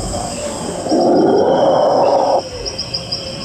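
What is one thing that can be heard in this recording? A dinosaur model lets out a loud, rough roar.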